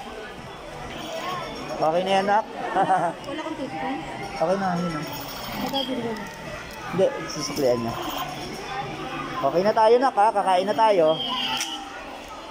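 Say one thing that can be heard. A young child talks nearby.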